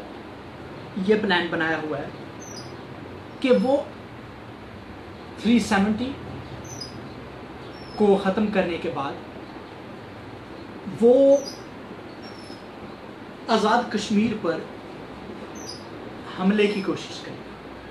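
A man speaks in short bursts with pauses, close to a microphone.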